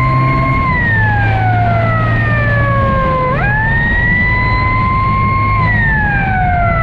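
A motorcycle engine whines loudly close by, its pitch falling and rising as it shifts gears.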